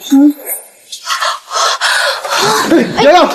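A young woman gasps and breathes heavily.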